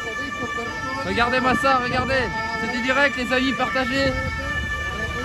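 A young man speaks into a microphone with animation.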